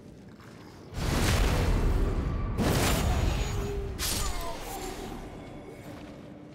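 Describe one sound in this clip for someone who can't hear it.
Heavy blows and crashes of a fight ring out loudly.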